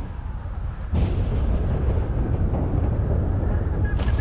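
Thunder cracks and rumbles.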